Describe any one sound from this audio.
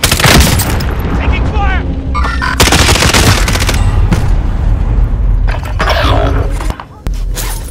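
Explosions boom and rumble heavily nearby.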